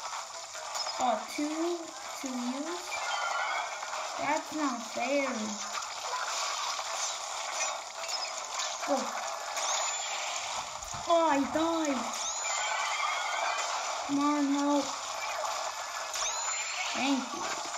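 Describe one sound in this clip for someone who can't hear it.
Short chirping game sounds swoop up and down in pitch from a small speaker.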